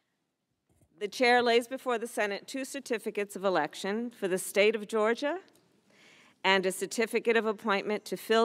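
A woman speaks clearly and formally into a microphone.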